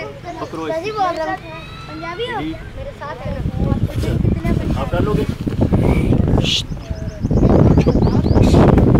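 Young children chatter and call out nearby.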